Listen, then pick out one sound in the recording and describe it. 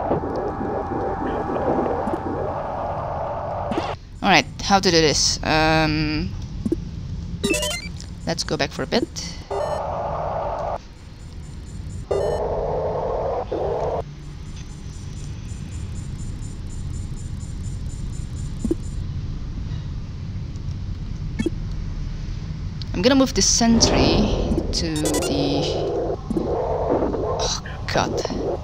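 Electronic beeps and chimes sound in short bursts.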